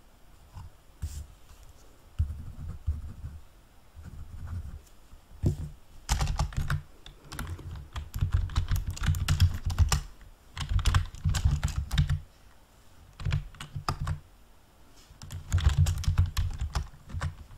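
Keys clatter as someone types quickly on a keyboard.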